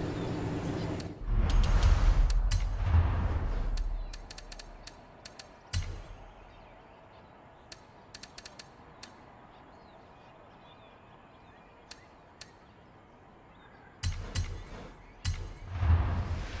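Game menu clicks tick in short bursts.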